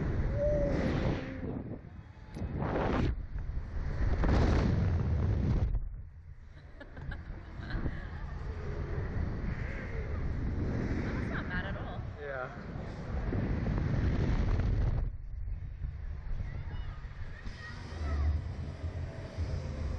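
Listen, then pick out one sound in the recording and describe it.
Wind rushes loudly past in strong gusts.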